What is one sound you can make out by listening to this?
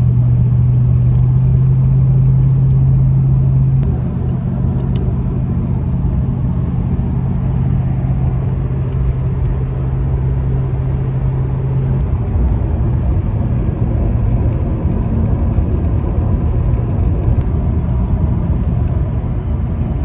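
A car engine and road noise rumble steadily inside a moving car.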